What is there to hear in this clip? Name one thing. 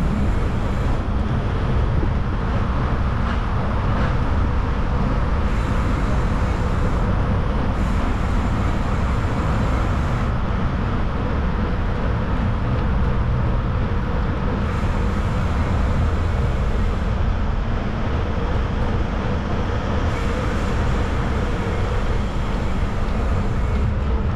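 Wind rushes steadily and loudly past.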